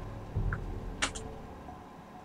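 A soft click sounds as a menu opens.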